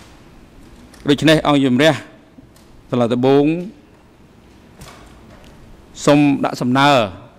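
A man speaks into a microphone in short, calm phrases with pauses between them.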